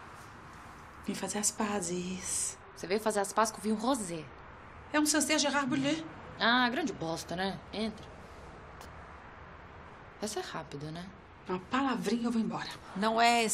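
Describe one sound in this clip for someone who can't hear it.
A woman speaks playfully, close by.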